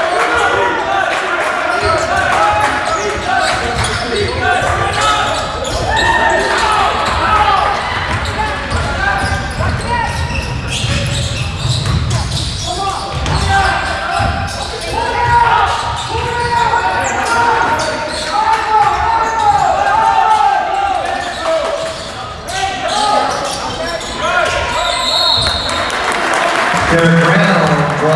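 Spectators talk and call out throughout a large echoing gym.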